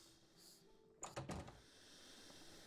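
A heavy wooden door thuds and creaks open.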